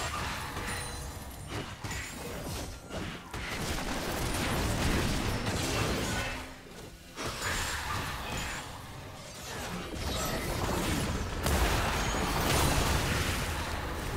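Magic blasts and clashing weapons crackle and boom in a busy battle.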